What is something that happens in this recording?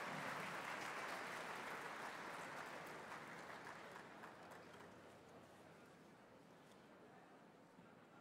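A large audience applauds in a big echoing hall, and the applause slowly fades.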